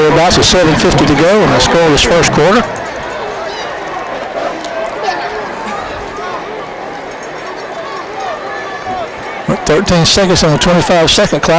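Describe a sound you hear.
A crowd of spectators murmurs and chatters in the background.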